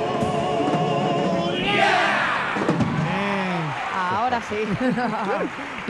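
A choir of men sings loudly together.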